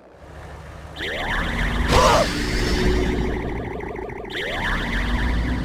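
An energy blast explodes with a crackling boom.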